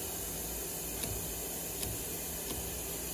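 A caulking gun clicks as its trigger is squeezed.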